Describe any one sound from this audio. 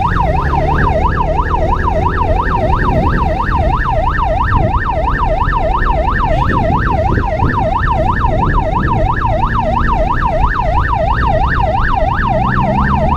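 A motorcycle engine rumbles steadily nearby.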